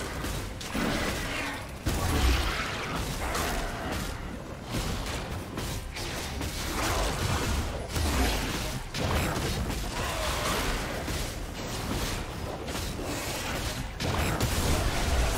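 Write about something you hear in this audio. Magic spells blast and crackle in a fight.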